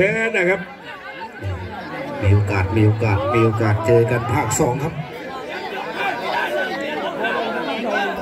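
A crowd of men shouts and chatters loudly nearby.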